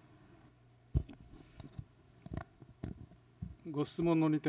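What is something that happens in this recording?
Papers rustle and knock close to a microphone.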